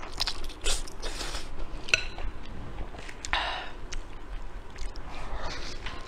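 Soft bread crackles and tears between fingers.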